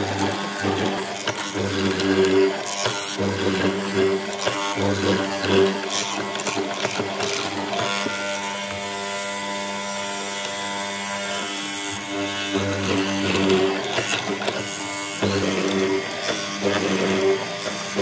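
A mortising chisel chops and grinds into wood in repeated bursts.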